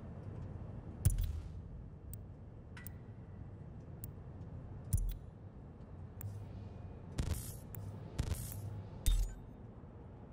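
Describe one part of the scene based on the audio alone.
Short electronic clicks and whooshes sound now and then.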